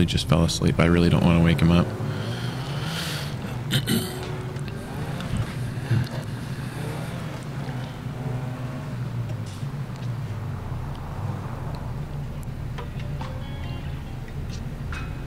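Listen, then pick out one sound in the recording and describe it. A truck engine hums steadily as it drives.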